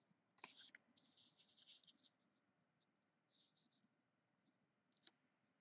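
Paper rustles and slides as it is handled up close.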